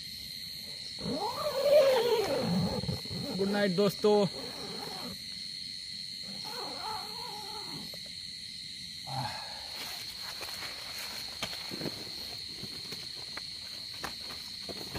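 Tent fabric rustles and crinkles.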